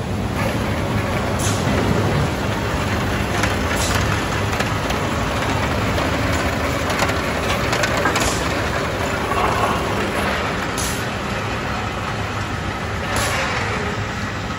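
A hot steel bar scrapes and rattles as it slides along a metal trough.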